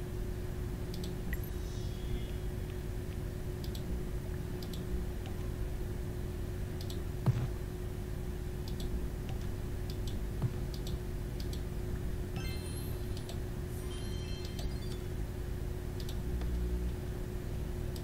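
Soft interface clicks and blips sound now and then.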